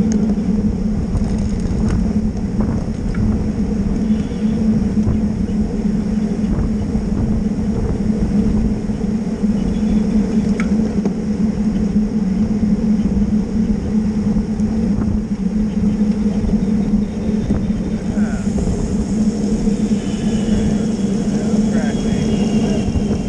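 Bicycle gears tick and click.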